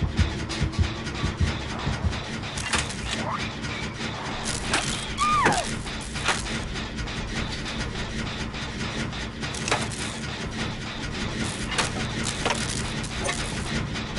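Metal parts click and clatter as a machine is worked on.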